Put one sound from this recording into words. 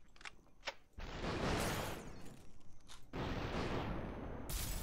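A gun fires with a sharp crack.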